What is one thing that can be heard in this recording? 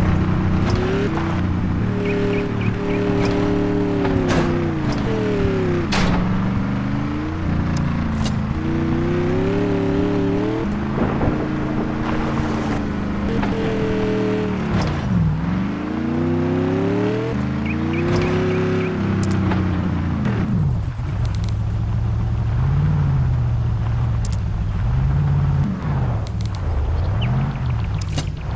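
The engine of an eight-wheeled off-road truck revs up and down.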